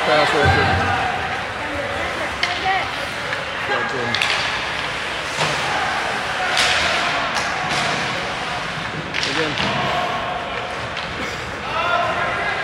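A crowd of spectators talks and shouts in a large echoing arena.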